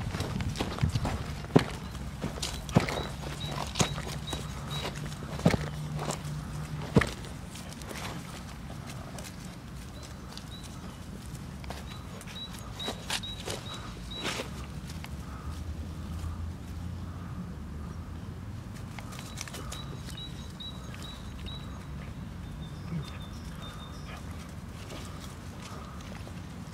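Puppies' paws patter and rustle through grass and dry leaves.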